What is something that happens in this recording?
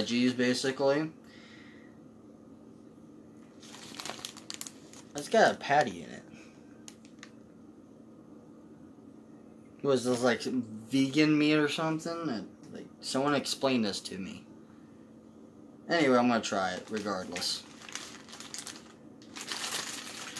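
A paper wrapper crinkles and rustles.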